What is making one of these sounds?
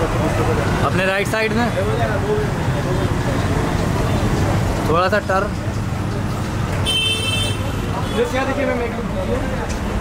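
A young woman speaks briefly nearby.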